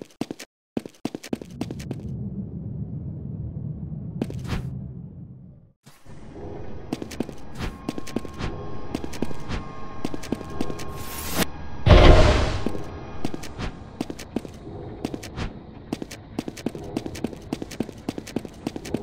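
A running game character's footsteps tap in a quick rhythm.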